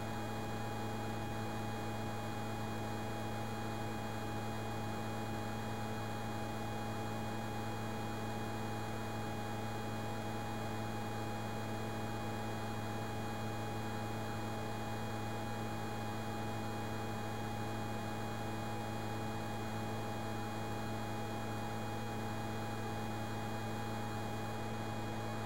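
A jet engine drones steadily in a video game.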